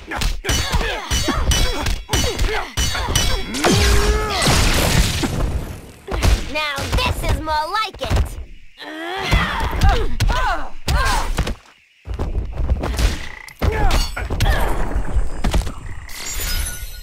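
Punches and kicks land with sharp thuds and cracks.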